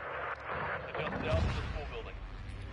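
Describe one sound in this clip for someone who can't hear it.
A missile launches with a loud rushing whoosh.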